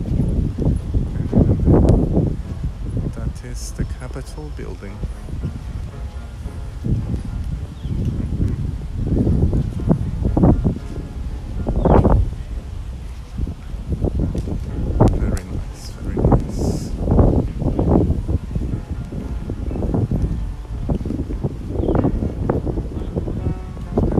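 Wind gusts across the microphone outdoors, coming and going in bursts.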